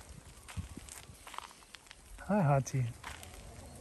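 A dog's paws patter softly on dirt and grass.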